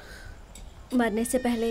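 A woman speaks with alarm, close by.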